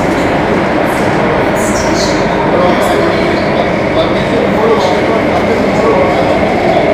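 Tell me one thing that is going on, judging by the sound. An electric metro train rumbles along through a tunnel.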